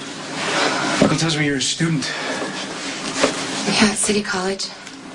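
A young woman speaks nearby in a tense, emotional voice.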